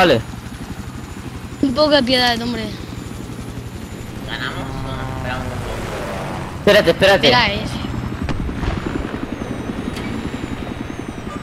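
A helicopter's rotor thumps steadily and quickly.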